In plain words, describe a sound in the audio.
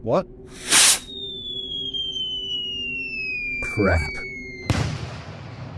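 A flare whistles as its pitch falls.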